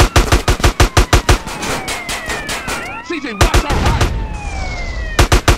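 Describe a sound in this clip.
A police siren wails and swoops nearby.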